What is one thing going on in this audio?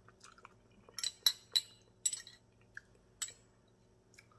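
A woman slurps noodles loudly close by.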